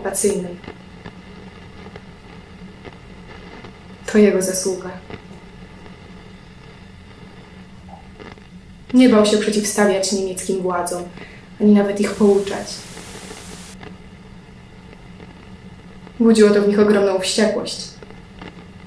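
A young woman speaks calmly and close by in short phrases, with pauses between them.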